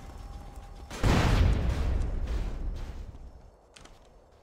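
A car explodes with a deep boom.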